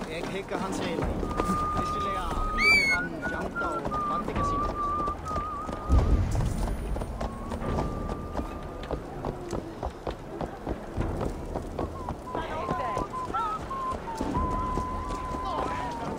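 A horse's hooves clop steadily at a trot.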